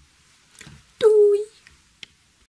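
A phone gives a short electronic tone.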